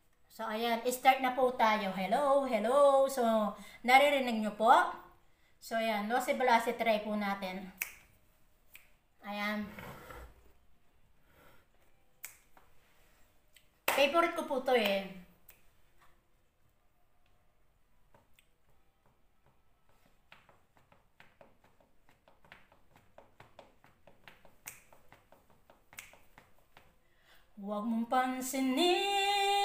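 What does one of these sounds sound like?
A middle-aged woman sings close to a microphone.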